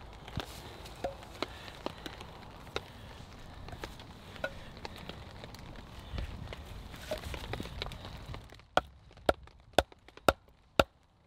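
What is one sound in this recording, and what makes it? A metal blade knocks sharply against wood, again and again.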